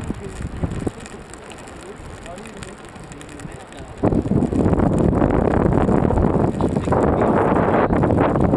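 Spray splashes over the bow of a sailboat.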